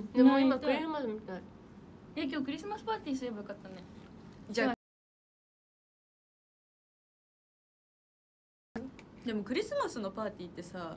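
Young women talk with animation, close to a microphone.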